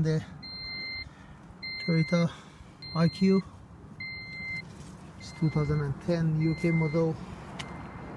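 A car's warning chime beeps steadily over and over.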